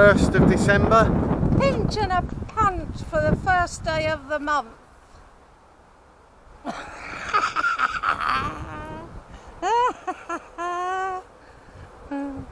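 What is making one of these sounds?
A middle-aged man talks close by, calmly.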